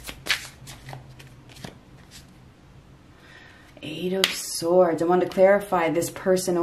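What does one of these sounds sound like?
A playing card is laid down and slides softly onto a table.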